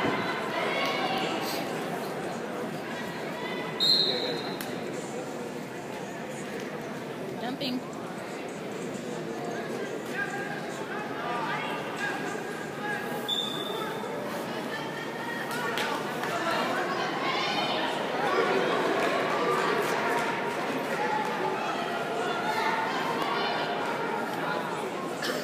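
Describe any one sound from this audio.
A crowd of people chatters and shouts throughout a large echoing hall.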